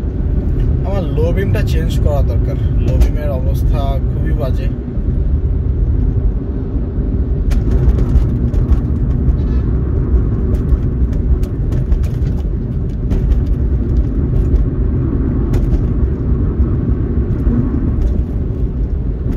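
A car engine hums and tyres rumble steadily on the road, heard from inside the car.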